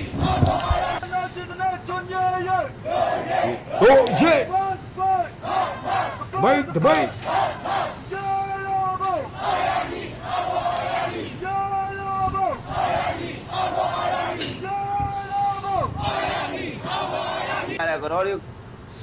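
A young man sings.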